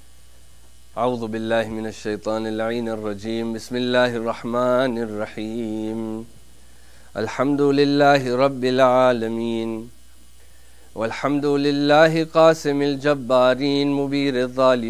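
A man speaks through a microphone in a slow, drawn-out voice, with pauses.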